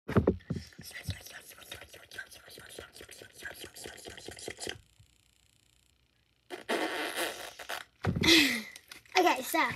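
A young girl speaks close by with animation.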